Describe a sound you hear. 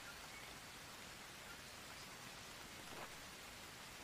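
A notebook page rustles as it is turned.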